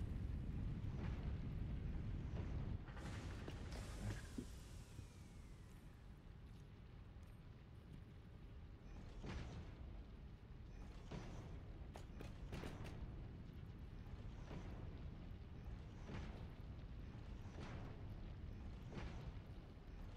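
Short interface clicks and swishes sound now and then as items are moved.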